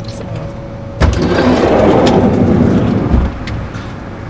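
A vehicle engine hums while driving along a road.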